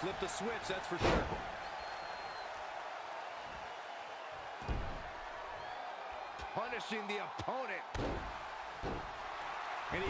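Heavy bodies slam onto a wrestling ring with loud thuds.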